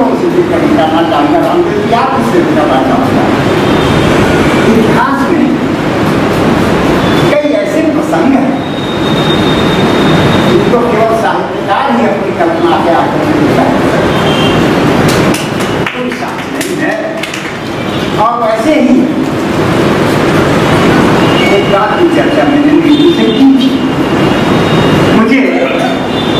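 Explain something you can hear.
An elderly man speaks steadily into a microphone, heard through a loudspeaker.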